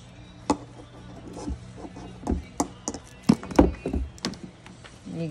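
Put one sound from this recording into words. A cable and a small handheld tool knock and rattle against a hard surface.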